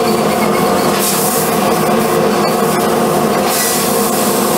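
A laser cutter hisses as it cuts through sheet metal.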